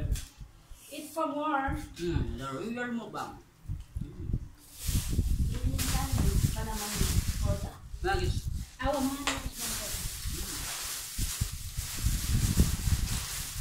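Paper food boxes rustle and crinkle.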